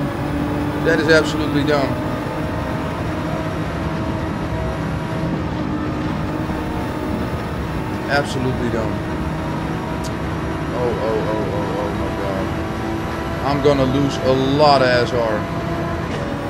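A man talks in short bursts into a headset microphone.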